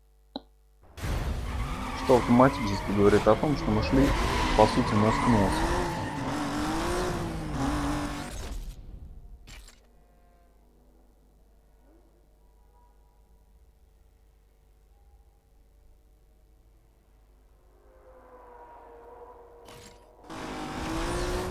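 A car engine revs and roars as the car speeds away.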